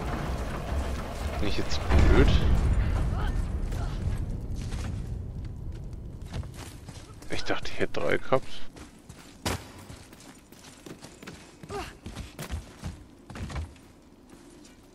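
Heavy footsteps crunch on stone and wood.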